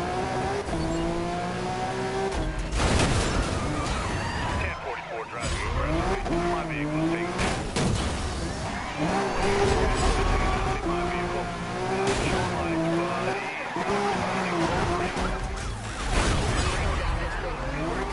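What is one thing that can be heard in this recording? A sports car engine roars and revs up and down.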